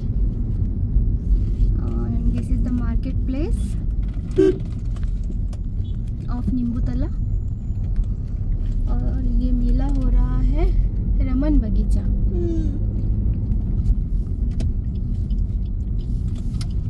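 A car engine rumbles steadily as the car drives along a road.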